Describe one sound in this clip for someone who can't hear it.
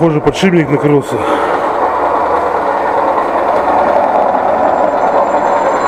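A washing machine runs with a loud, steady whir.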